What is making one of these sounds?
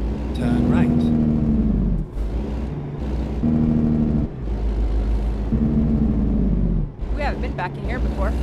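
A truck's diesel engine rumbles and revs as it shifts through the gears.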